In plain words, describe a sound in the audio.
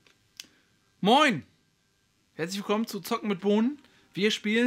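A young man greets and talks calmly and cheerfully, close to a microphone.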